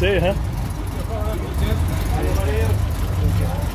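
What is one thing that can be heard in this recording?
Men talk casually nearby.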